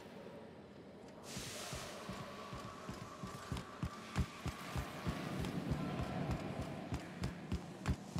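Footsteps thud steadily on a metal floor.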